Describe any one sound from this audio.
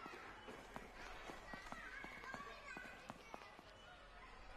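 Children's footsteps patter across a wooden floor.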